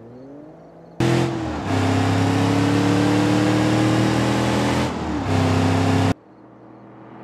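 A car engine roars loudly at high speed.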